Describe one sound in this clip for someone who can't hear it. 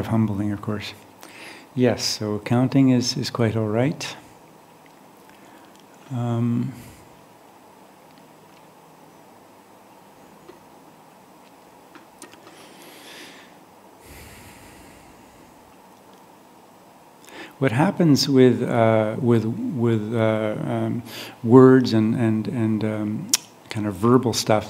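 An older man speaks calmly into a close microphone, with long pauses.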